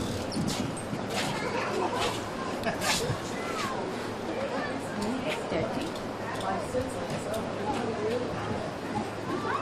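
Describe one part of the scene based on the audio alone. Several adults talk nearby.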